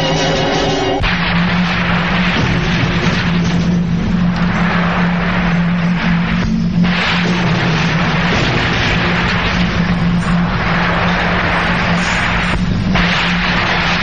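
Waves wash onto a shore.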